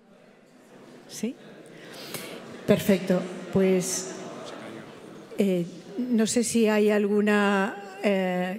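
A woman speaks through a loudspeaker in an echoing hall.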